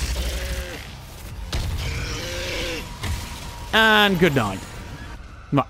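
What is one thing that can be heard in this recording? A monster growls and roars up close.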